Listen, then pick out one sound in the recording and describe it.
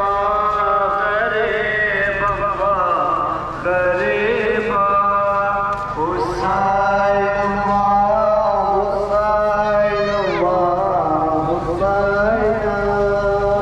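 A man's voice chants a lament loudly through loudspeakers, echoing along the street.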